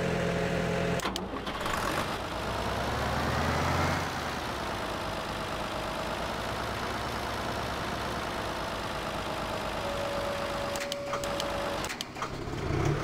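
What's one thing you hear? A tractor engine revs and changes pitch as it drives over grass.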